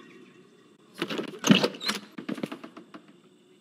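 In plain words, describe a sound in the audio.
A door swings open with a creak.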